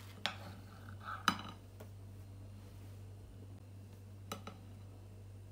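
A knife taps and scrapes against a plate.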